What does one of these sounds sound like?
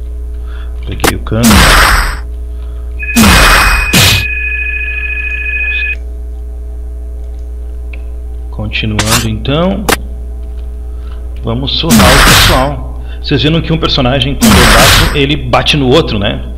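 Heavy blows land with sharp thwacks.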